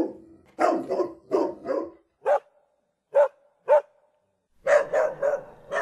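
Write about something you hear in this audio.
A small dog barks sharply and repeatedly.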